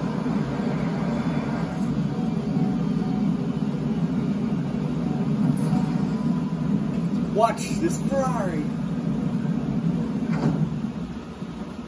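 A video game car engine drones steadily through a television speaker, then stops.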